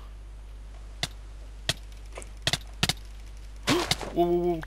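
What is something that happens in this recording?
A sword strikes with short, sharp hits.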